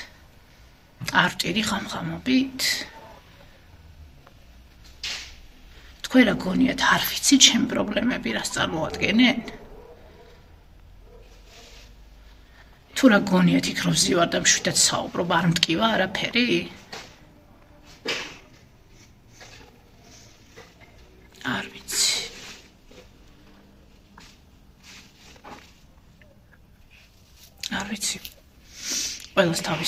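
A young woman speaks close by in a quiet, emotional voice, pausing often.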